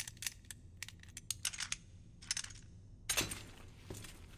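A padlock snaps open with a metallic clunk.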